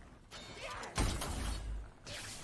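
A gun fires in loud bursts.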